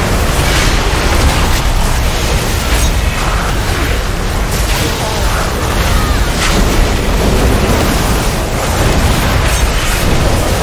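Video game spell and combat effects crash and whoosh.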